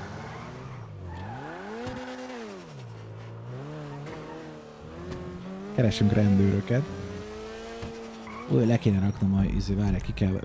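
A car engine revs up and down as it accelerates and shifts gears.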